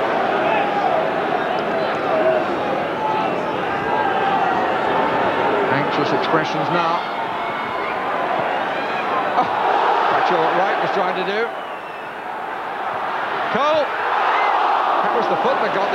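A large stadium crowd roars and chants in an open-air ground.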